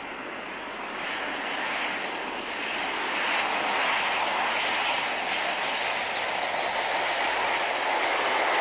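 A jet engine whines shrilly as a jet trainer passes close overhead.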